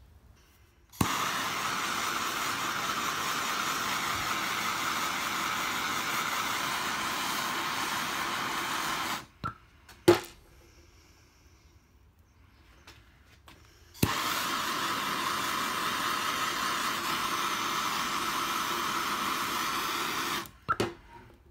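A gas torch roars steadily with a loud hiss.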